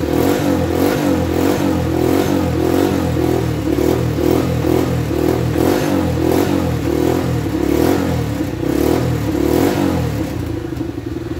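An engine starter cranks over and over with a quick, pulsing churn.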